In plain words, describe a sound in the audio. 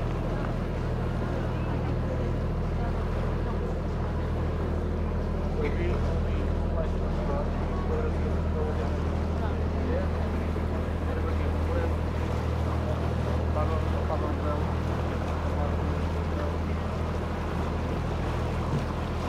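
A boat engine hums steadily and low.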